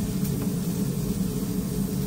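Lettuce leaves rustle in gloved hands.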